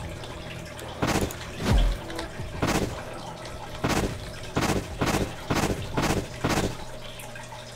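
Quick whooshing bursts sound again and again as a game character dashes.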